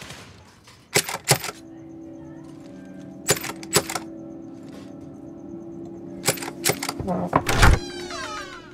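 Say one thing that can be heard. Knocks sound on a wooden door.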